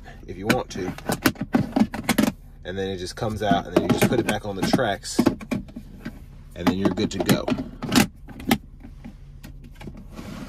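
A console lid clicks open and shut.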